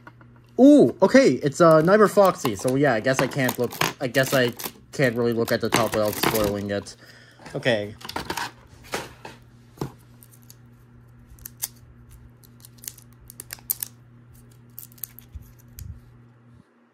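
Small plastic pieces click and tap as they are handled.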